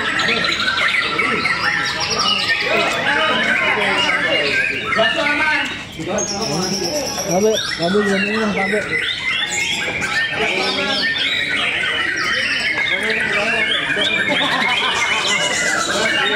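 Men talk in a crowd nearby.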